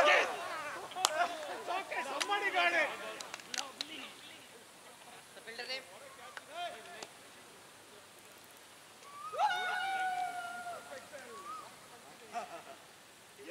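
Men call out to one another across an open field.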